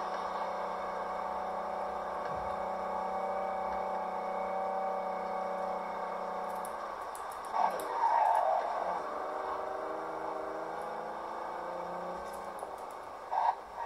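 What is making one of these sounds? A car engine hums loudly and revs up and down as the car speeds along.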